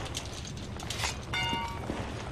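A metal panel cover clanks open.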